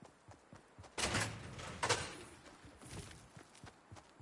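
A door bangs open with a creak.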